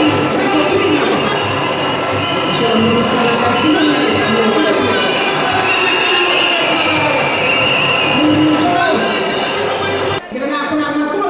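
A large crowd cheers and sings loudly.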